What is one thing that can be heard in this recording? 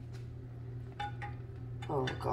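Metal tongs clink against a pot.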